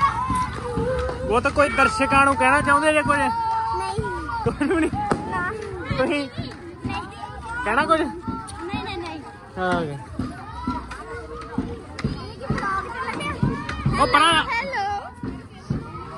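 Young boys talk and laugh excitedly close by.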